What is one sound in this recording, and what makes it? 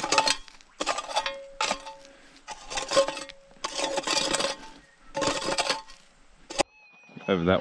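A metal rake scrapes and rakes through dry soil in repeated strokes.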